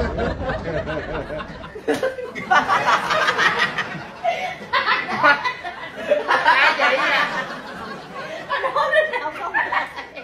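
Young men shriek and laugh loudly close by.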